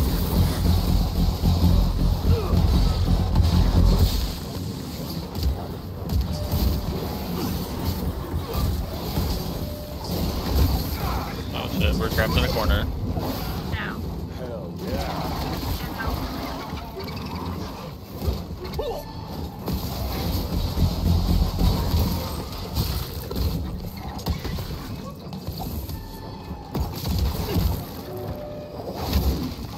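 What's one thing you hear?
Heavy blows thud in a video game fight.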